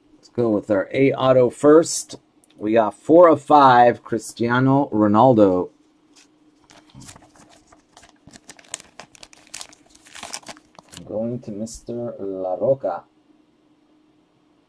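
Plastic card cases click and rustle in hands.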